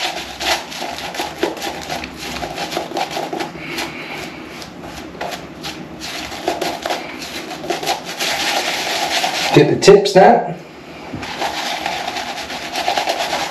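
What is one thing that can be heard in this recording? A razor scrapes through stubble in short, rasping strokes.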